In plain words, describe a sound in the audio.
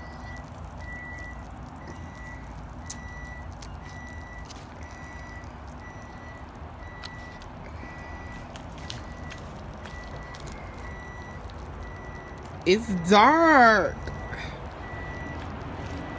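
Sausages sizzle on a grill.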